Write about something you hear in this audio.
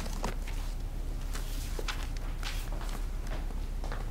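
Footsteps approach on a hard floor.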